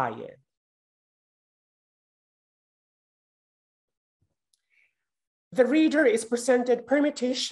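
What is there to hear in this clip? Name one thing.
A young woman speaks calmly through an online call microphone.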